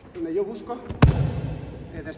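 A body thuds heavily onto a mat.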